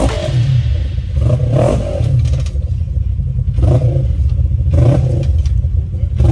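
An off-road buggy engine rumbles loudly as it climbs over rocks.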